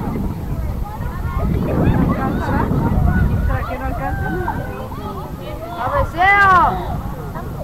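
Young soccer players shout and call to each other far off across an open field.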